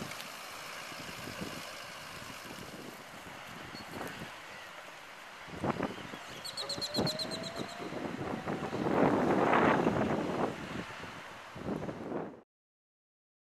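A small electric cart whirs and rolls away over pavement.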